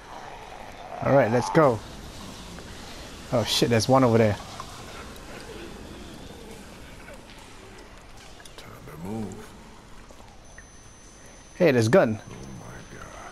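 A man groans and gasps with strain, close by.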